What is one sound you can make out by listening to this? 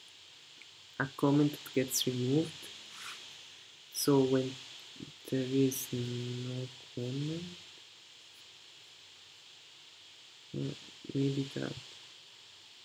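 A young man speaks calmly into a nearby microphone.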